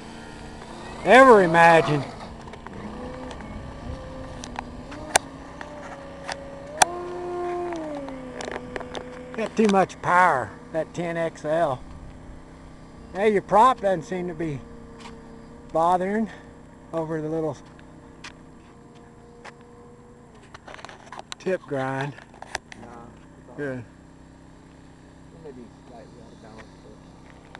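A small model plane engine drones steadily and changes pitch as the plane flies.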